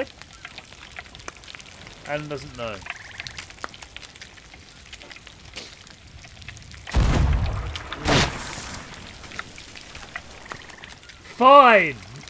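A campfire crackles and pops steadily.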